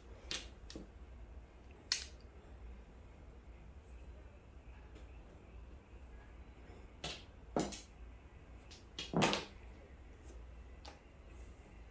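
Mahjong tiles click and clack against each other.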